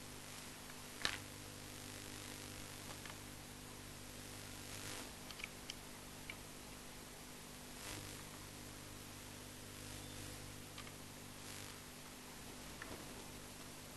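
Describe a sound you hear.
Wooden pieces knock and click on a tabletop.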